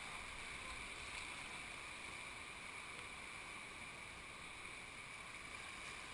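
A kayak paddle dips and splashes in the water.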